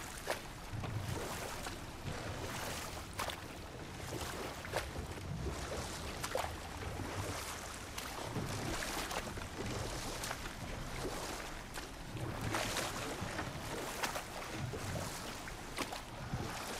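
Oars dip and splash in the water at a steady rowing pace.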